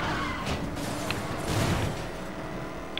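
Two cars crash together with a loud metallic bang.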